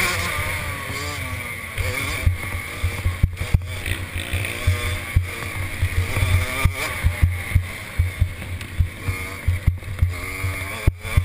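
A quad bike engine revs and roars up close, rising and falling in pitch.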